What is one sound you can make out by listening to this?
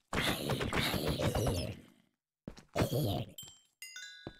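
A sword strikes with dull thuds.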